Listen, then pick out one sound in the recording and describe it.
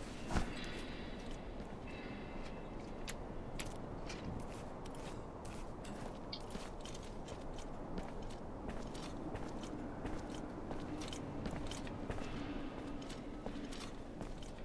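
Footsteps tread softly on stone.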